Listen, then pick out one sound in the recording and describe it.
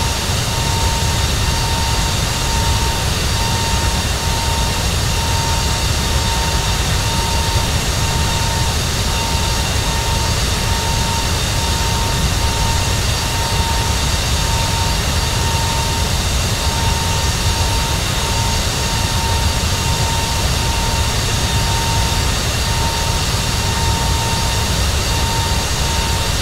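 Jet engines on a cruising airliner roar with a steady rushing sound.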